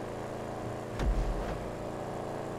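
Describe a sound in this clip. A car thuds heavily.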